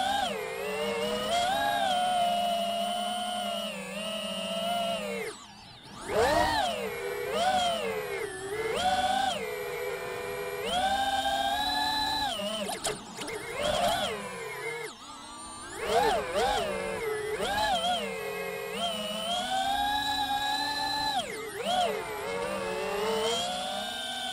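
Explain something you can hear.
A small drone's motors whine loudly, rising and falling in pitch as they speed up and slow down.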